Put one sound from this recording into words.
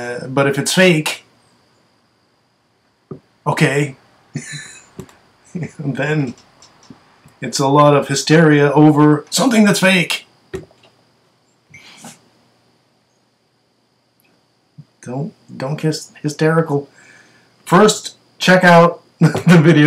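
A middle-aged man talks calmly and closely into a microphone, with pauses.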